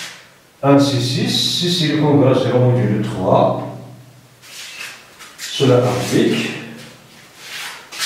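A man speaks calmly and clearly nearby.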